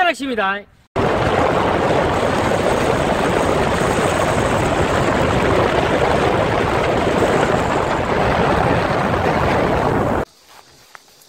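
A car drives along a paved road, with a steady rush of tyres.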